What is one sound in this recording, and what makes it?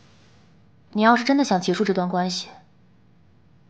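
A young woman speaks softly and tensely, close by.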